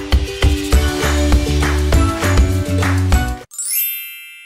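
Cheerful music plays, then ends.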